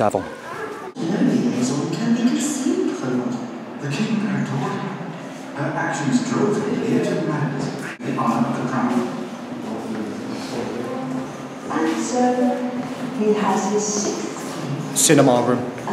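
Men's voices from a film play through loudspeakers in an echoing room.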